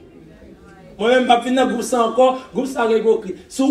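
A woman speaks up loudly close by.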